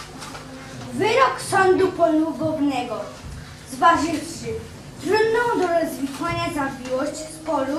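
A young boy reads aloud clearly.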